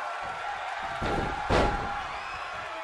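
A body slams hard onto a wrestling mat with a heavy thud.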